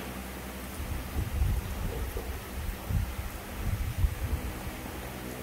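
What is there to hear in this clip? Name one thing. Hands tear a ripe mango open with a soft, wet squelch.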